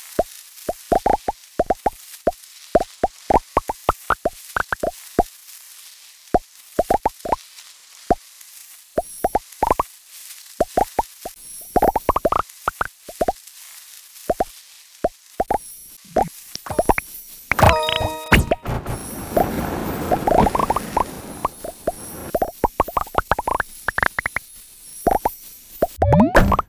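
Short rising electronic blips chime in quick bursts as a game snake gobbles up pellets.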